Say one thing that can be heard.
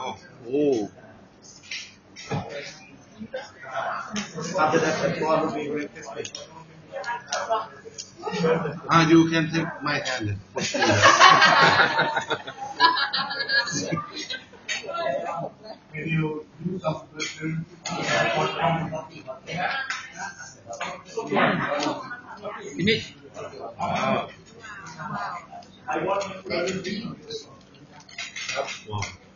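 Young women talk and laugh close by.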